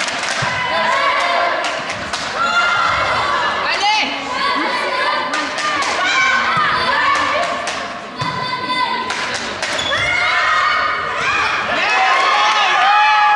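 Young women players call out loudly across the court.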